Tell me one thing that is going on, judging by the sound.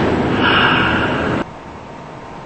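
Subway train doors slide shut with a thud.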